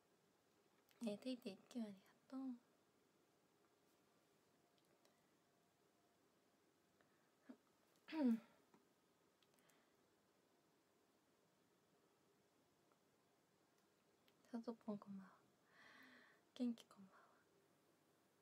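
A young woman speaks softly and casually, close to a microphone, in short bursts with pauses.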